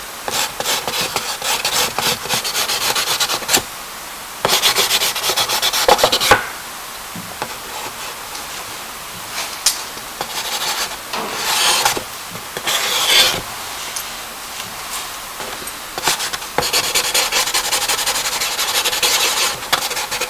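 A pencil scratches and scrapes quickly across paper close by.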